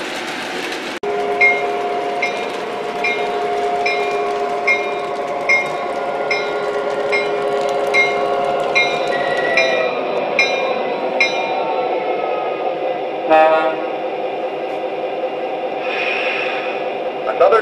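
A model diesel locomotive idles with a steady electric hum and engine sound.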